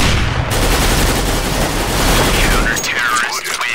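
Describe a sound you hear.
Rapid rifle gunfire rattles loudly.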